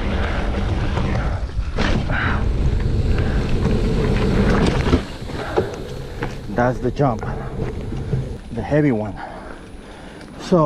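Bicycle tyres rumble over a bumpy dirt trail.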